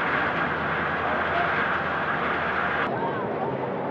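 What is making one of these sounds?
Water churns and splashes against a ship's hull.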